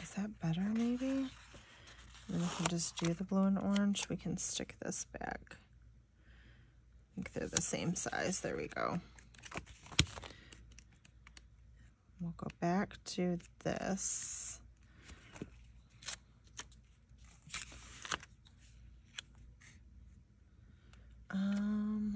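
A sticker peels off its backing sheet.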